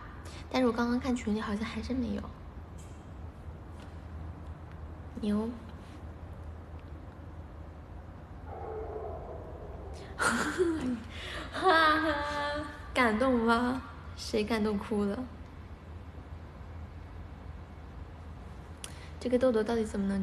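A young woman speaks playfully and close up, in bursts with pauses.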